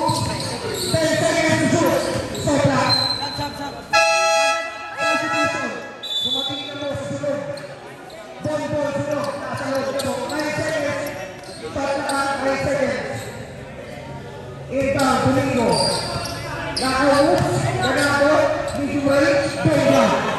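Young men shout and call out to each other across an echoing covered court.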